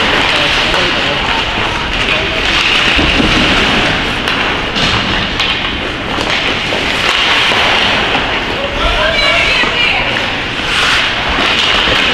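Ice skates scrape and carve on ice in a large echoing rink.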